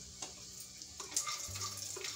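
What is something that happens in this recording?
A wooden spatula scrapes and stirs nuts in a pan.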